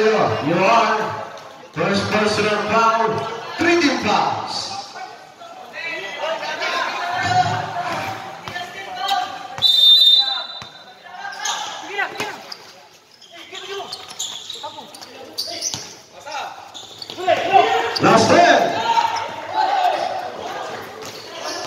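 Young men talk and shout close by in a large echoing hall.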